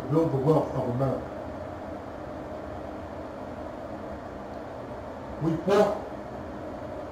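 A man speaks calmly into a microphone, close by, in short bursts.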